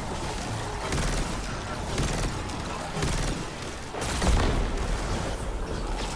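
Rapid gunfire crackles and thumps.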